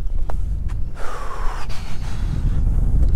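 A fishing line whizzes off a spinning reel during a cast.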